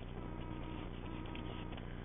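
A stack of paper pages riffles as it is flipped.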